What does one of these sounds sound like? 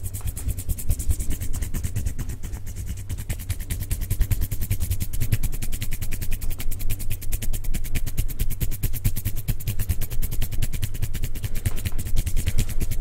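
Hands rub and tap quickly and very close to a microphone, with soft crackling clicks.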